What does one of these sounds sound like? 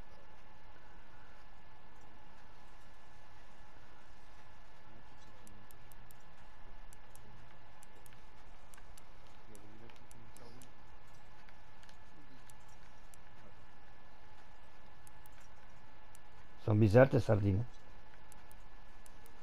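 A fishing reel clicks softly as it is wound in.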